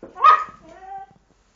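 A dog barks sharply up close.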